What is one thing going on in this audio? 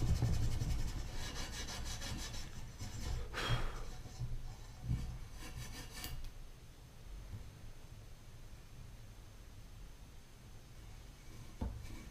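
Metal parts click and scrape.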